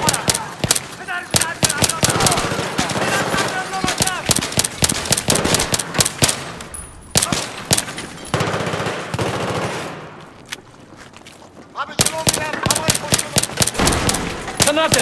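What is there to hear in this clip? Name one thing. Rapid gunshots crack in quick bursts, echoing.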